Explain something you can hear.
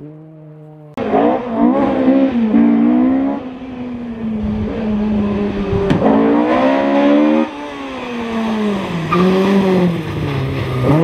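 A rally car engine revs hard and roars as the car speeds closer.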